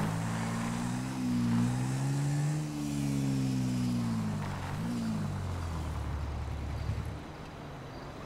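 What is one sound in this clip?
A small motorcycle engine revs up and down, then cuts out.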